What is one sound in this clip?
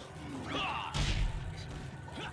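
A body thuds onto the floor.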